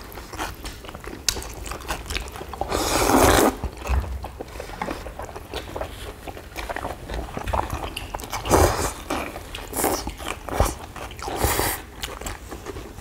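Noodles are slurped loudly and wetly, close by.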